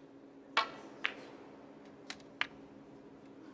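Snooker balls knock together with crisp clicks.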